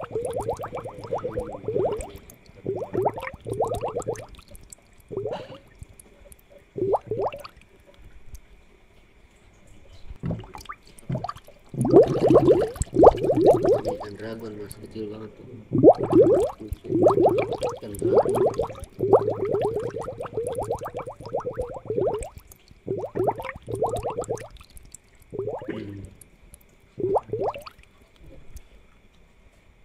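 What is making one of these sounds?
Air bubbles gurgle softly in water.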